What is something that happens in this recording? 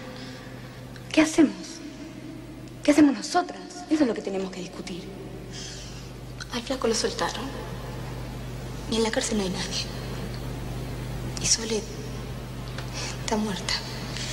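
A woman speaks calmly and gently close by.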